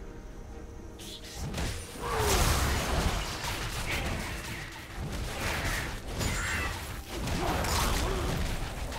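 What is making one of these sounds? Magic spells crackle and whoosh during a fight.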